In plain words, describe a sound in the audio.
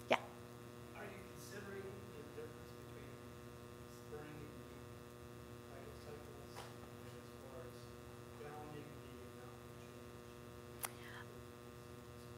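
A woman speaks calmly and haltingly into a microphone.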